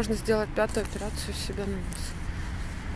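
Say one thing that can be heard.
A young woman speaks close to the microphone.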